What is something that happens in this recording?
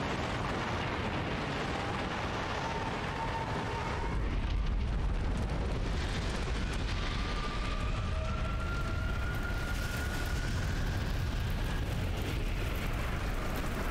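Flames roar and crackle loudly.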